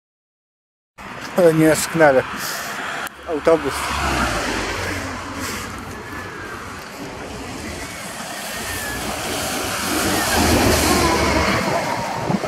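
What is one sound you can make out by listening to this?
A car drives past on a wet road with a hiss of tyres.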